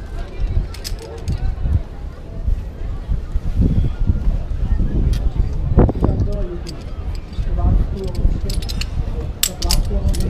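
Metal carabiners clink against a harness.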